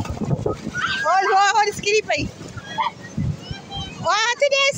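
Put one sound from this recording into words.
A young child squeals and shouts excitedly.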